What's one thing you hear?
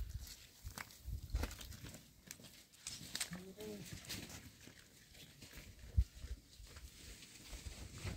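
Footsteps shuffle on dusty ground.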